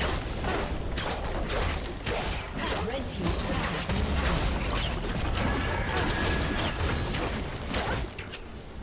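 Magic blasts and hits crackle and boom in a fast battle.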